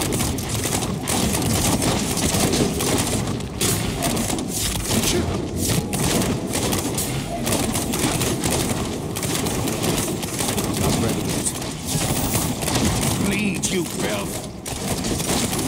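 Magic blasts crackle and explode in quick succession.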